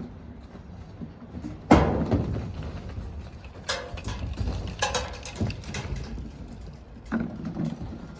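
Footsteps thud on a metal roof.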